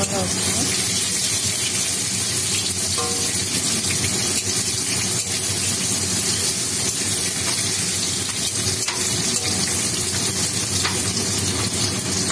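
A metal spoon scrapes and clinks against a pan while stirring.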